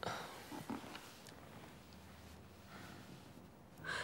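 A young woman weeps quietly and sniffles.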